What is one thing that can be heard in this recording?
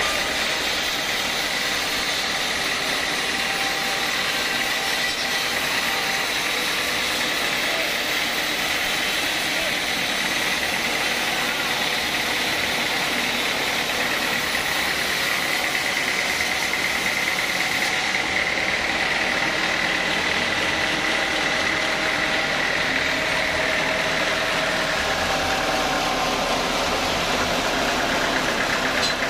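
A band saw whines loudly as it cuts through wood.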